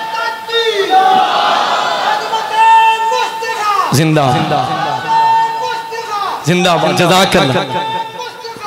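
A man chants melodiously into a microphone, heard through loudspeakers with echo.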